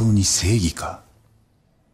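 A young man speaks in a tense, low voice.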